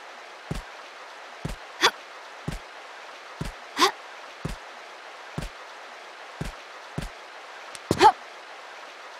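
Hands and feet knock on metal ladder rungs in a steady climbing rhythm.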